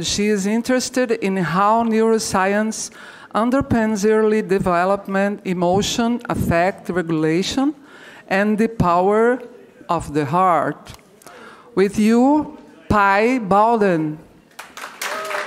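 A woman speaks into a microphone in a calm, measured voice.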